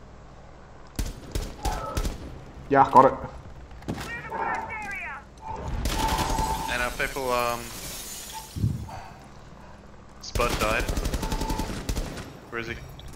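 Rifle shots ring out in rapid bursts.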